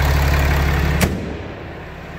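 A vehicle hood slams shut.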